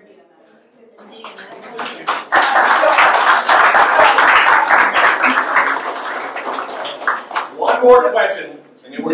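A crowd of men and women talk loudly over one another nearby.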